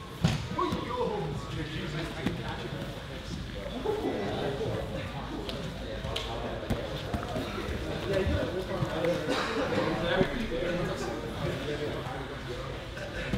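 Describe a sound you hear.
Bodies shift and thump on a padded mat.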